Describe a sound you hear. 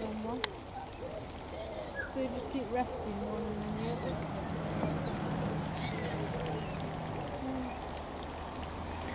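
Water laps and splashes softly as birds dabble their beaks in it.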